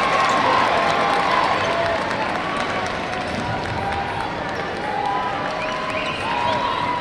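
A large crowd cheers and murmurs in a big echoing arena.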